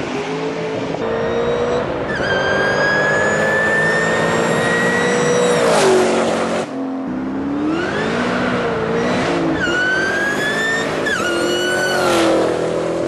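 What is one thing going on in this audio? A car engine revs hard and shifts through gears as the car speeds closer.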